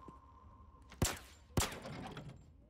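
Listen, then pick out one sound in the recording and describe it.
A pistol fires two sharp, loud shots.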